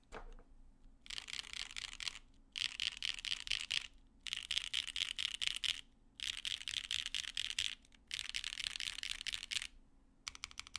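Fast typing clatters on a mechanical keyboard in short bursts.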